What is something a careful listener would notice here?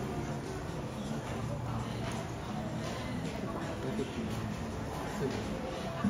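A cart's wheels rattle softly across a hard floor in the distance.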